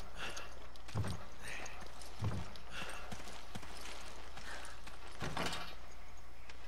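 A heavy wooden door clunks and unlocks.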